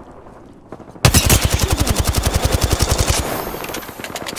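An automatic gun fires a rapid, loud burst.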